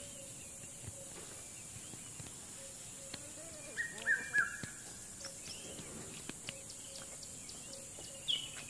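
A buffalo tears and crunches grass close by.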